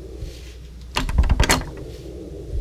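A door handle rattles as a locked door is tried.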